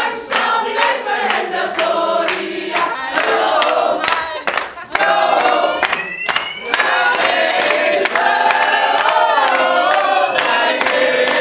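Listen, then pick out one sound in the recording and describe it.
A group of women sing loudly and cheerfully together.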